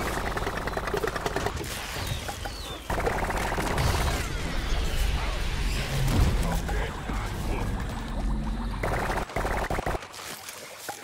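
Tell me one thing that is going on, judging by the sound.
A cartoon blaster fires rapid bursts of shots.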